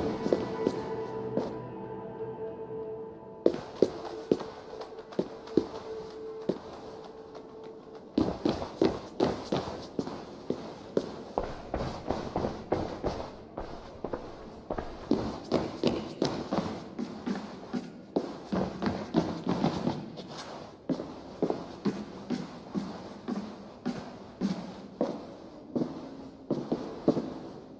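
Footsteps tap steadily on stone and wooden floors indoors.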